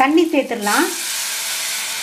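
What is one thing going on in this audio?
Water pours into a sizzling pan.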